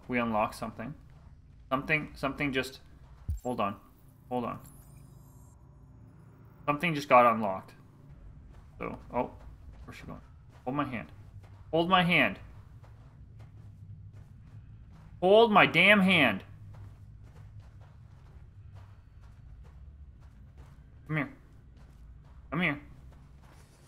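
A young man talks into a close microphone in bursts, with animation.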